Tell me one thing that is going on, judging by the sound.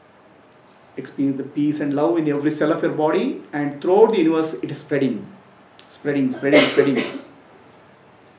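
A man speaks calmly and slowly into a close microphone.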